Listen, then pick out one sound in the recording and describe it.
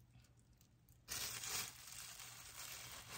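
A plastic lid clatters onto a bowl.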